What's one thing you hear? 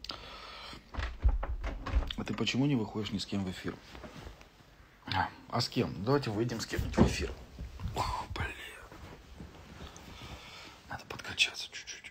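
A man speaks with animation close to a phone microphone.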